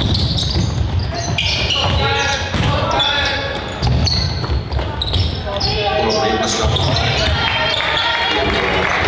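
Sneakers squeak sharply on a gym floor in a large echoing hall.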